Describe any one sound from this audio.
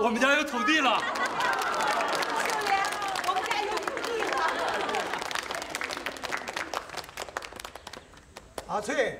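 A crowd of men and women clamors excitedly.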